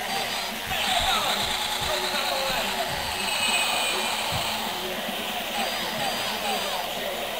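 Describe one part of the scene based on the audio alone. A plastic toy figure scrapes softly as it is dragged across a carpet.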